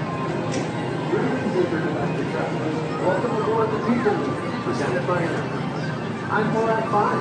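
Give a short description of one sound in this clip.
A crowd of men, women and children chatters outdoors.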